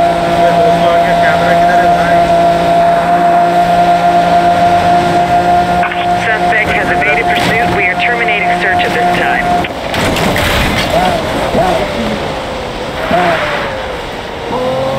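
A sports car engine roars steadily at high speed, then drops as the car slows.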